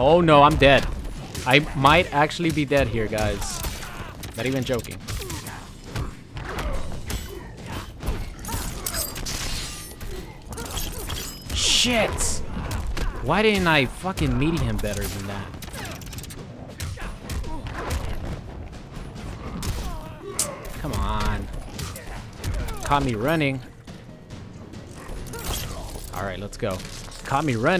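Heavy punches and kicks land with sharp thuds and cracks.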